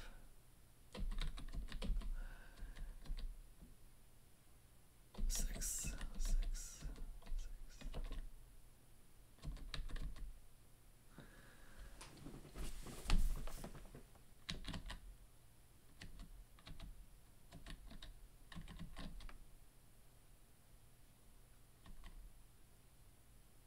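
A man talks calmly and thoughtfully into a close microphone.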